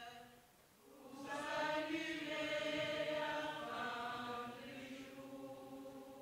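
A group of young people sing together in unison.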